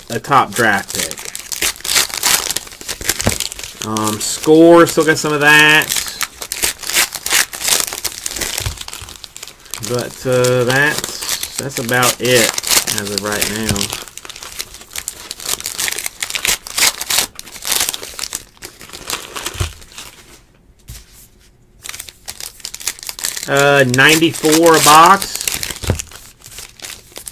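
Plastic wrappers crinkle and tear as packs are opened.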